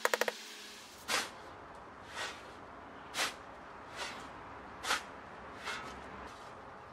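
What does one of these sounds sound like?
A shovel scrapes and thuds into sand.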